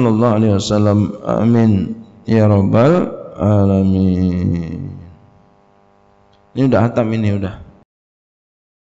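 A middle-aged man speaks and chants in drawn-out tones into a microphone.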